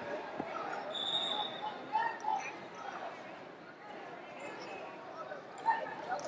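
A crowd of men and women chatters and shouts in a large echoing hall.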